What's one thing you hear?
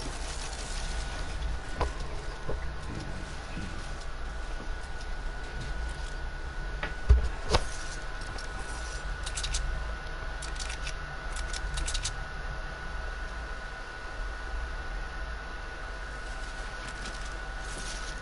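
Footsteps patter as a game character runs across hard ground.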